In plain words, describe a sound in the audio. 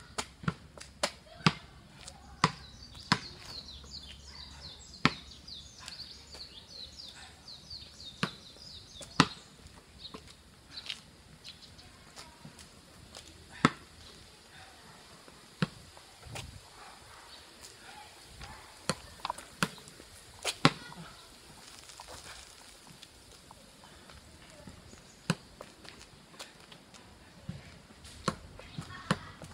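A football is kicked and bounces, thumping sharply again and again.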